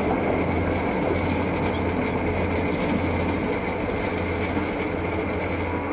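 A train rumbles steadily across a metal bridge.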